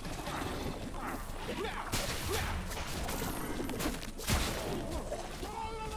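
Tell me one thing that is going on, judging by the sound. Magic spells crackle and burst in quick bursts.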